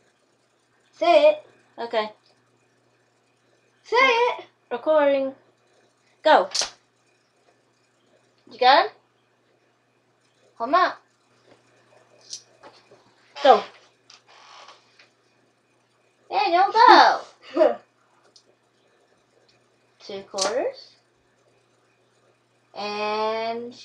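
A young boy talks and laughs nearby.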